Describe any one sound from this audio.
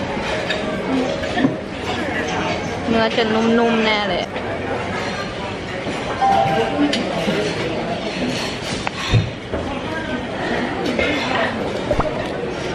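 A spoon and fork clink against a plate.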